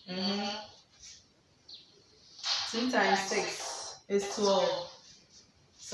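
A young woman explains calmly and clearly, close by.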